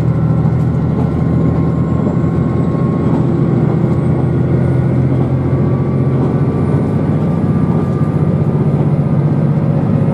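A train rumbles steadily along the track, heard from inside a carriage.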